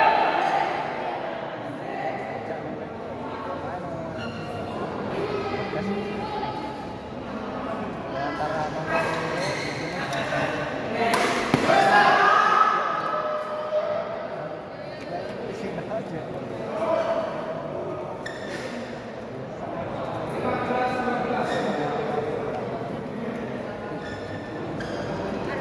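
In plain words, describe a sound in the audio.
Players' shoes squeak on the court floor.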